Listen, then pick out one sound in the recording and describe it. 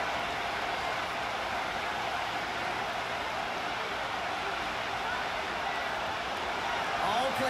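A large crowd cheers and murmurs steadily in a stadium.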